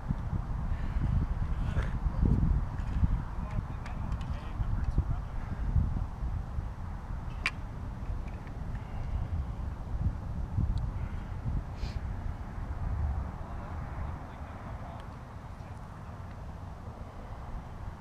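Wind gusts and rumbles outdoors in an open space.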